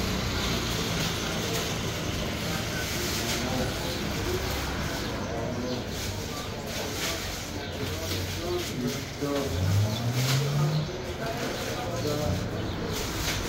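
A ceiling fan whirs steadily.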